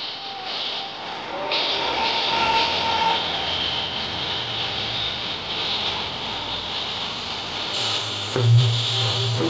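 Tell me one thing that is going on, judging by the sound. A large crowd cheers and chants in an open stadium.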